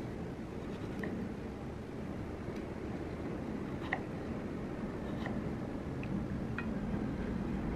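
A knife cuts through a strawberry on a wooden board with soft taps.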